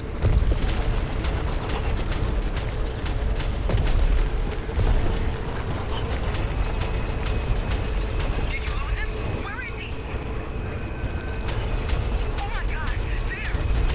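A vehicle engine roars at high speed.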